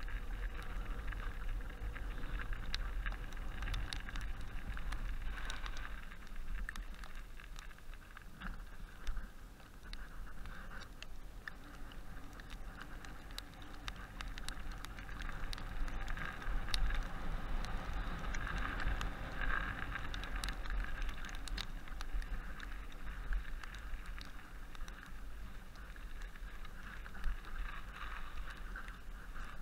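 Bicycle tyres crunch and rattle over a rough, snowy track.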